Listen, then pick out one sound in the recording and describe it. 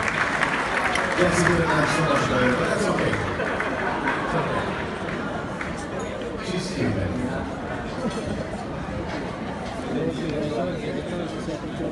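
A crowd of men and women chatters in a large echoing hall.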